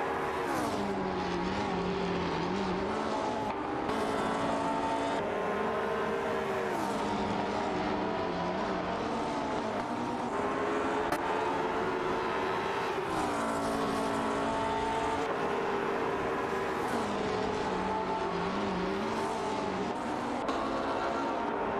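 A racing car engine roars steadily, its pitch rising and falling through gear changes.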